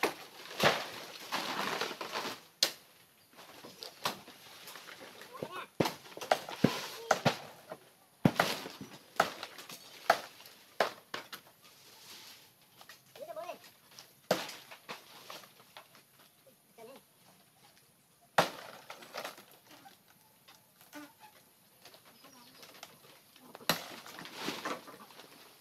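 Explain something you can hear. Dry palm fronds rustle and crackle as a man climbs a tree trunk.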